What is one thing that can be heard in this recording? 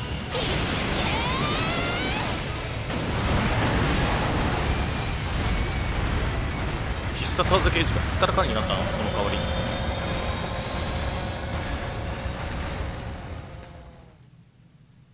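Loud explosions boom and roar with crackling bursts.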